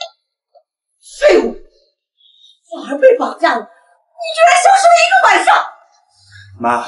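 A middle-aged woman shouts angrily.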